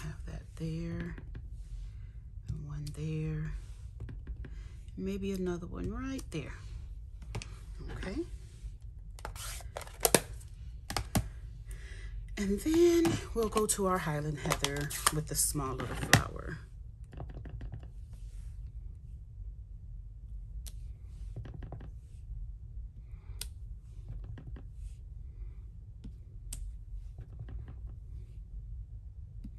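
A stamp taps softly on an ink pad and paper.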